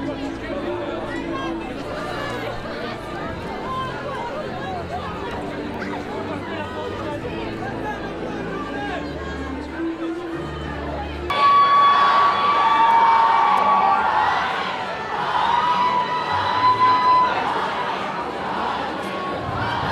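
A crowd chatters noisily all around.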